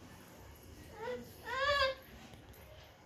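A young child squeals in a high voice.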